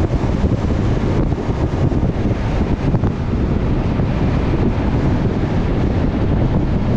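Wind rushes loudly past a moving vehicle.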